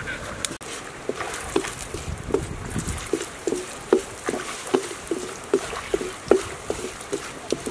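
Egg sizzles in hot oil in a wok.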